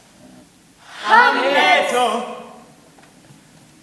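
Young performers' voices ring out together in a large echoing hall.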